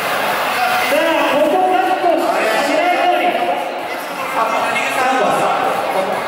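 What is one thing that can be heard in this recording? A man speaks with animation through a headset microphone over loudspeakers.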